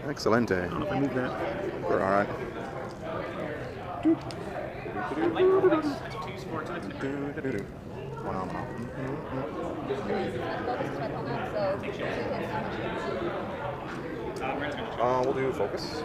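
Men talk with each other close by.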